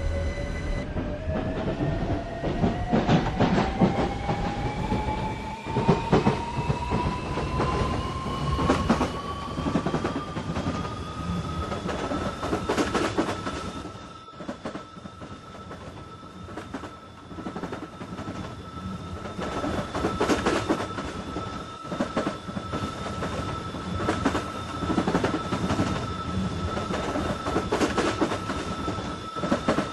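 A train's electric motor whines, rising steadily in pitch and then holding steady.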